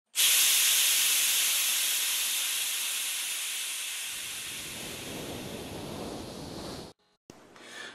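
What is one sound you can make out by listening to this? A jet of gas bursts out with a loud hiss that slowly fades.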